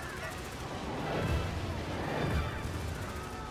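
Explosions boom with deep rumbling.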